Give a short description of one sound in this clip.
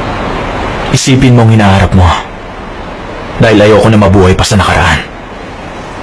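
A young man speaks quietly and seriously, close by.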